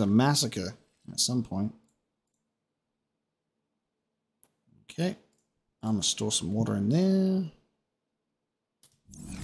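A man talks casually into a close microphone, in short bursts.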